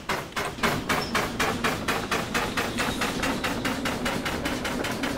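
A steam locomotive chuffs rapidly in a steady rhythm.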